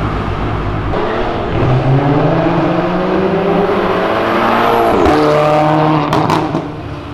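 A car engine revs up, rising in pitch through the gears.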